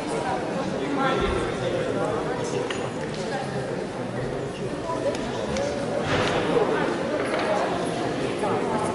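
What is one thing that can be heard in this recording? Men and women chatter at a distance in a large echoing hall.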